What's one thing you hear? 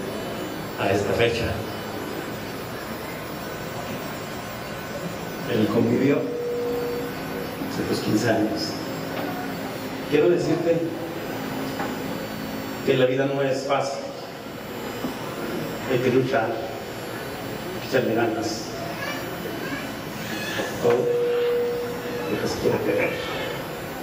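A crowd murmurs quietly in the background.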